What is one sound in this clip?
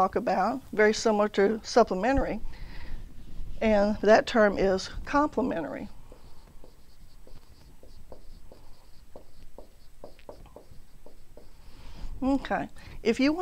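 A middle-aged woman speaks calmly through a close microphone.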